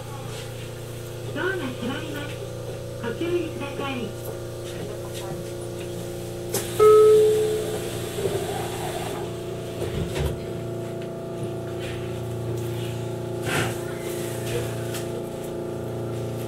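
A train's motor hums steadily while the train stands still.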